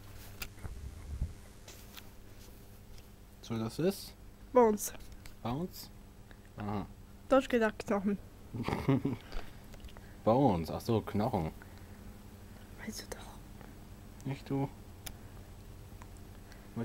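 A hand strokes a rabbit's fur with a soft rustle.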